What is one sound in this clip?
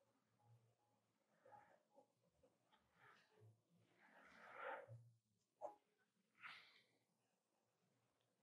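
A pencil scratches and rubs on paper.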